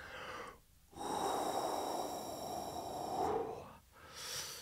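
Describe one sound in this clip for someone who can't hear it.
A man blows out a long, hard breath.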